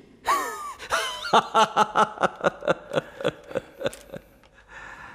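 An elderly man laughs heartily, close by.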